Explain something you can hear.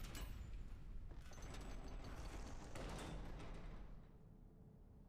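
A heavy metal door grinds open.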